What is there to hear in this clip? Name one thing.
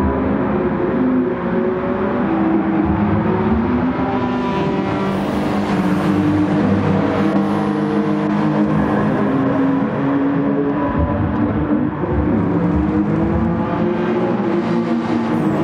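Racing car engines roar steadily at high revs.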